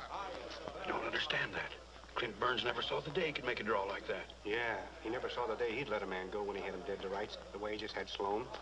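A man speaks loudly and gruffly up close.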